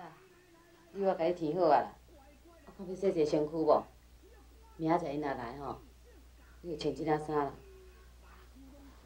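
A middle-aged woman speaks calmly and gently, close by.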